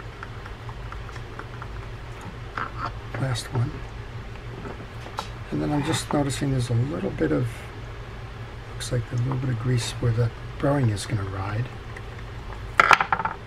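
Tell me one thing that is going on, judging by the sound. A small screwdriver turns screws with faint clicks.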